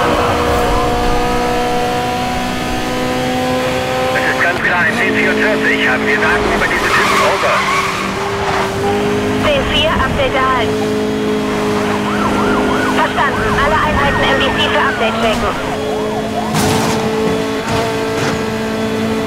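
A sports car engine roars at high speed with a steady drone.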